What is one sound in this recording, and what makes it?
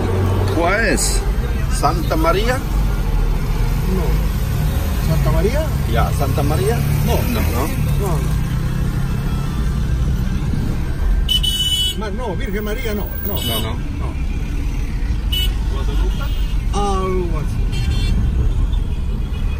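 A car engine hums and tyres rumble steadily on the road.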